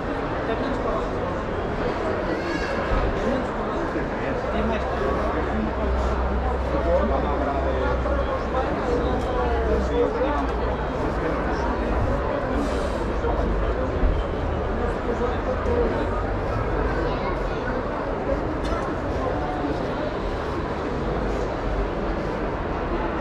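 A crowd of people chatters throughout a large echoing hall.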